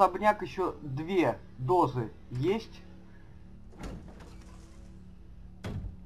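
A heavy wooden door opens.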